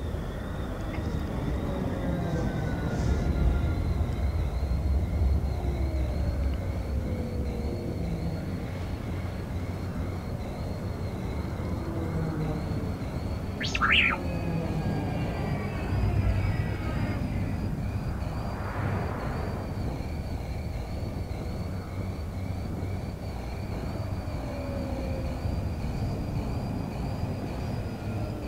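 A hovering vehicle's engine hums steadily as it flies.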